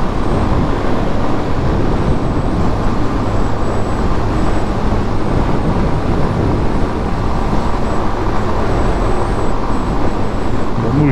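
Wind rushes loudly past a motorcycle rider at highway speed.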